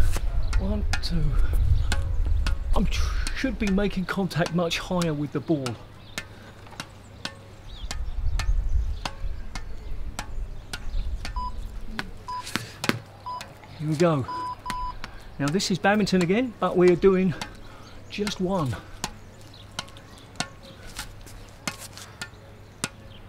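A racket taps a ball in a quick, steady rhythm.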